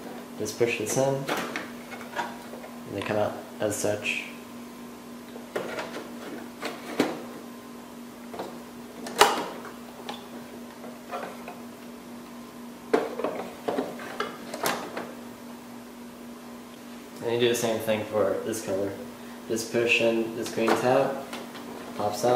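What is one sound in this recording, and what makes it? Plastic parts click and knock as hands handle a printer cartridge.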